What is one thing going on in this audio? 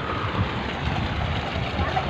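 Water gushes and splashes from a pipe.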